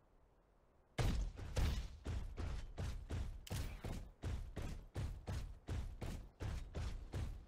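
A heavy mech stomps along with steady, rhythmic metallic footsteps.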